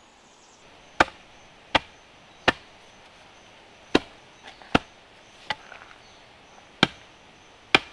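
Sharp knocks ring out as a wooden post is pounded into the ground.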